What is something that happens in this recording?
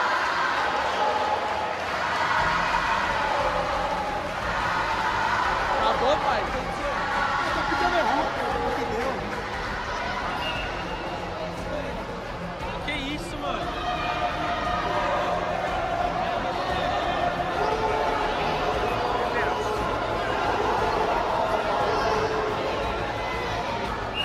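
Several teenage boys talk and call out nearby in a large echoing hall.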